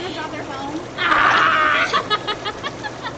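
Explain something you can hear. A young woman shrieks with laughter.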